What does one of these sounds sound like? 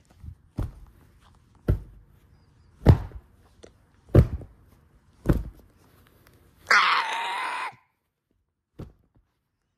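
Soft toys thump down onto a bed again and again.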